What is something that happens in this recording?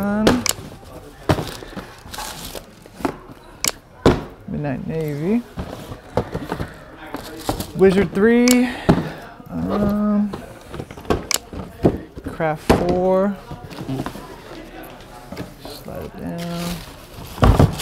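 Shoe boxes and shoes knock and rustle on a counter.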